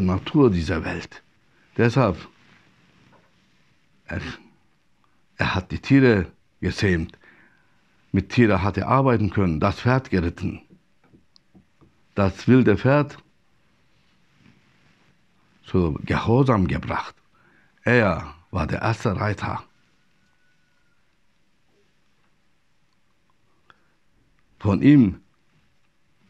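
A middle-aged man speaks calmly into a clip-on microphone, pausing often.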